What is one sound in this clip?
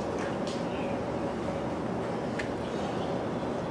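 Footsteps cross a hard floor.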